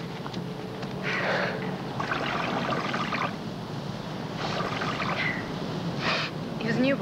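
Water splashes from a drinking fountain.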